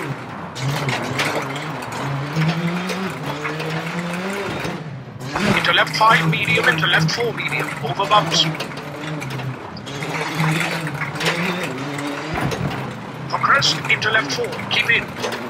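Gravel crunches and rattles under the tyres.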